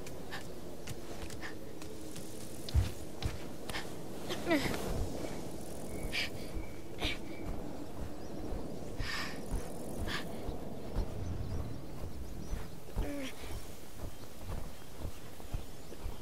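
A boy's hands and feet knock and scrape as he climbs stone and wood.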